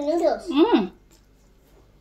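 A woman slurps noodles.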